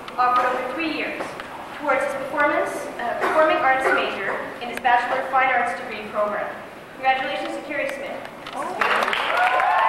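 A woman speaks steadily into a microphone over loudspeakers in a large echoing hall.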